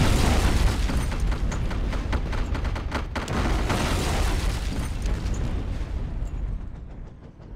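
A helicopter's rotor thumps and roars overhead.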